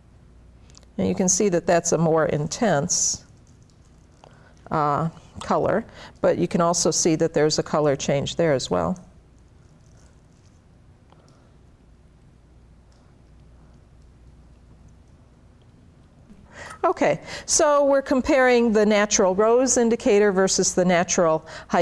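A middle-aged woman speaks calmly and clearly into a microphone, in short bursts with pauses.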